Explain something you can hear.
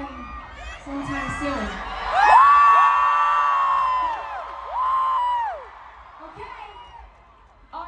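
A crowd screams and cheers.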